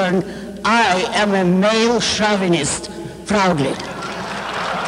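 An elderly woman sings into a microphone.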